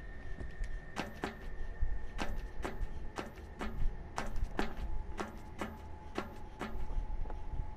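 Footsteps clank on metal ladder rungs in quick, sharp knocks.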